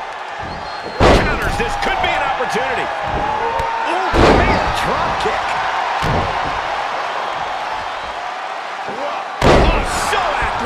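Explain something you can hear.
Heavy bodies slam down hard onto a wrestling mat with loud thuds.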